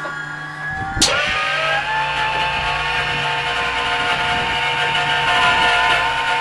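A piston aircraft engine coughs to life and runs loudly with a steady roar.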